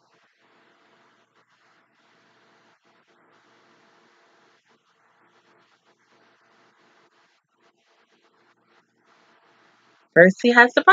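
A young woman sings quietly.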